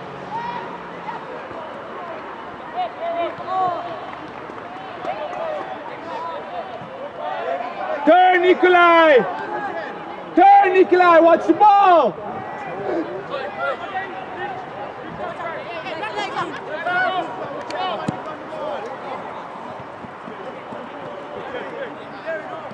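Young men shout and call to each other across an open outdoor field.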